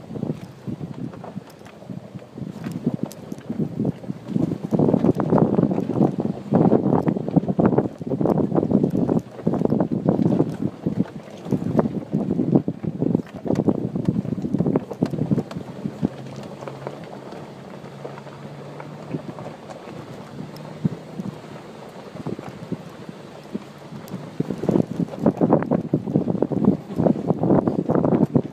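An off-road vehicle engine rumbles steadily while climbing.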